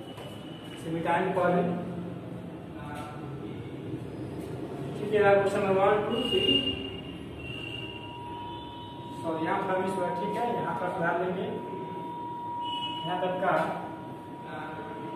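A young man speaks clearly and calmly, explaining.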